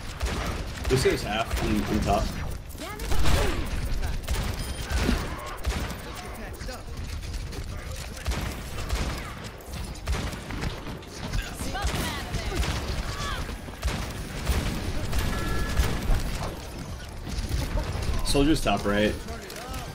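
Rapid video game gunfire rattles and booms.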